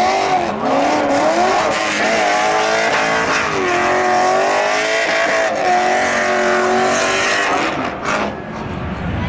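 Tyres squeal as a car spins in place.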